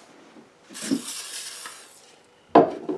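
An aerosol can sprays in a short hiss.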